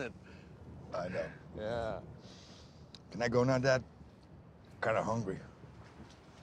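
A man with a low voice answers calmly.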